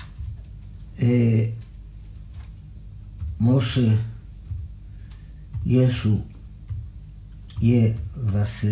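A man speaks loudly, very close, in short bursts.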